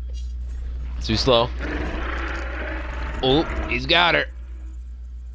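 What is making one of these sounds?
A large dinosaur roars loudly.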